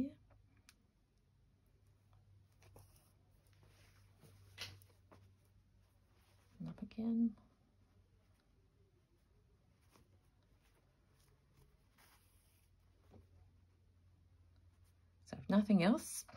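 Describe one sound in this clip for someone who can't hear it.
Cloth rustles softly as it is handled.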